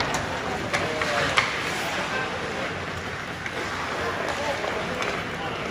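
Hockey sticks click and clack against a puck.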